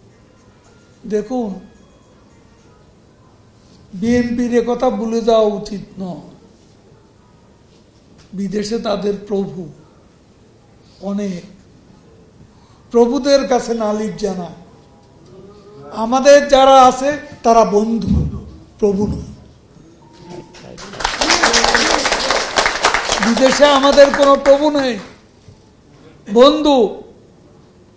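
An elderly man speaks into a microphone with emphasis, in short bursts with pauses.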